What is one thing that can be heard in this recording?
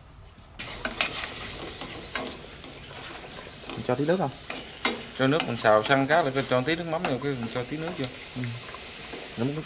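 Chopsticks scrape and tap against a metal pot.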